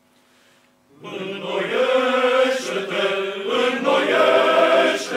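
A men's choir sings together in a resonant hall.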